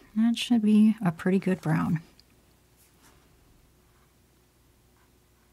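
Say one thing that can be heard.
A paintbrush dabs softly on canvas.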